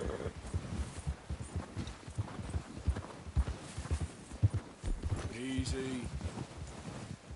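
Horse hooves thud steadily through deep snow.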